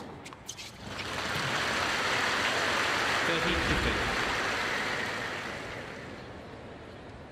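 A crowd applauds and cheers, swelling and then fading.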